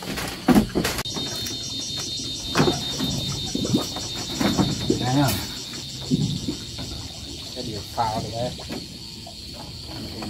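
Water laps gently against a wooden boat.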